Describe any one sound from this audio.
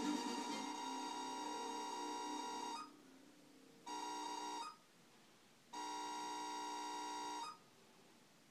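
Chiptune music from a video game plays through a television's speaker in short bursts.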